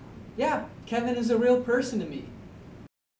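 A young man speaks cheerfully close by.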